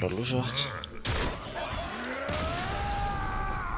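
A magical blast bursts with a crash.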